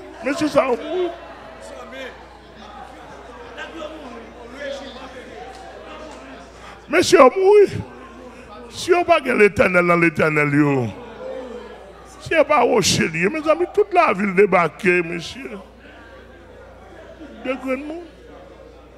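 A man speaks with animation into a microphone through loudspeakers in an echoing hall.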